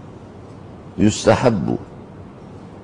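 An elderly man speaks briefly through a microphone.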